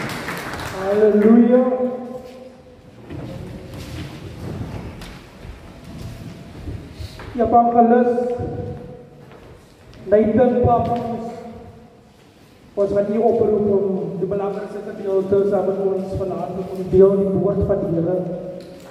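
A man speaks slowly through a microphone in an echoing hall.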